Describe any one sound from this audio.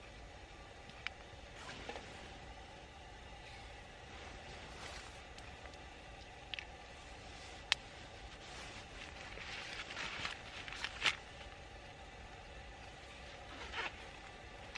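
Hands rustle and handle small items close by.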